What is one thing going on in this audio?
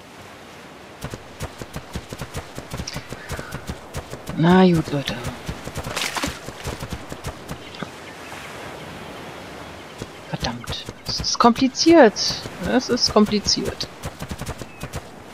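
Heavy footsteps thud rapidly on sand.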